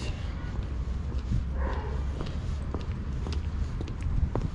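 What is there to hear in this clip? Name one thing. Footsteps tap on paving stones nearby.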